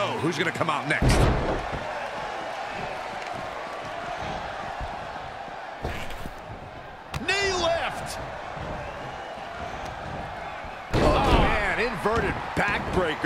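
Heavy bodies thud onto a wrestling mat.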